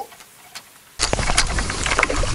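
Wind blows outdoors, rustling against the microphone.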